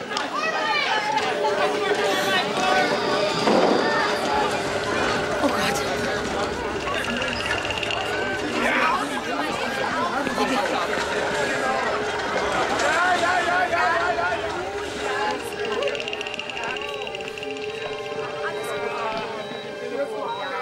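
A crowd of people chatters busily in an echoing hallway.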